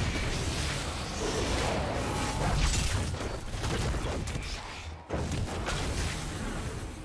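Magic spells crackle and burst in a rapid fight.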